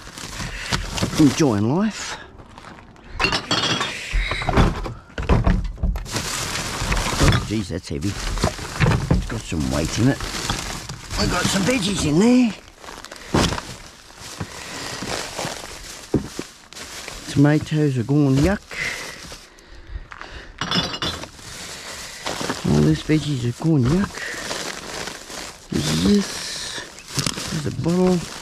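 Plastic bags rustle and crinkle as they are handled.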